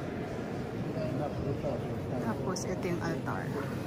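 Several people talk close by.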